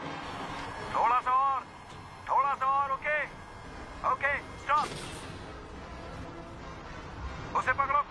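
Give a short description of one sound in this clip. A man cries out loudly in alarm.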